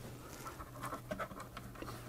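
A screwdriver scrapes and turns in a screw.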